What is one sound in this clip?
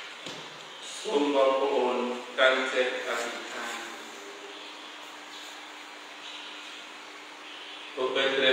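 A man chants through a microphone in an echoing room.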